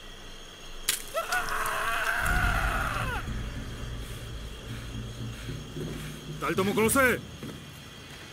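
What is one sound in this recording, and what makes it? A man speaks harshly to another man, heard close.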